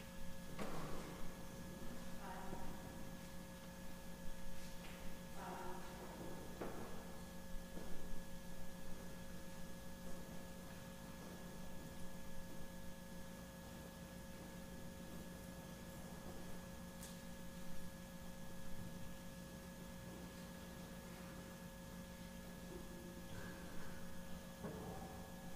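A man speaks briefly and quietly in a large echoing hall.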